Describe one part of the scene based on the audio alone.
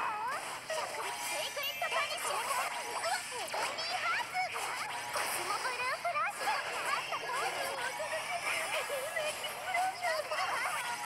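Rapid game sound effects of hits, clashes and magical blasts ring out.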